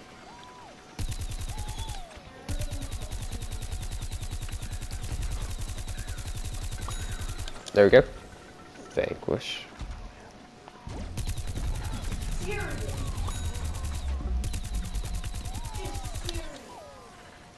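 A video game weapon fires in rapid bursts.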